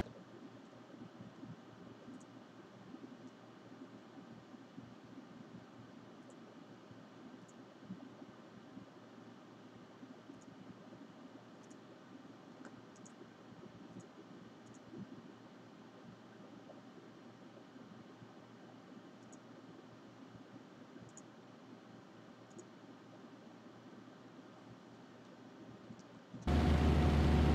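A young woman talks quietly and calmly into a microphone.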